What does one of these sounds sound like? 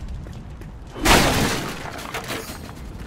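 An explosion bursts with a heavy boom.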